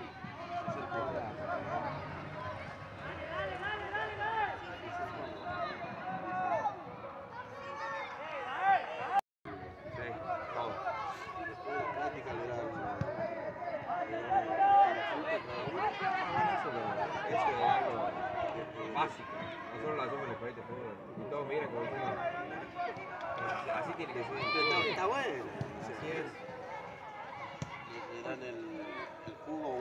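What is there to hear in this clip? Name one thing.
A crowd of spectators shouts and cheers nearby, outdoors.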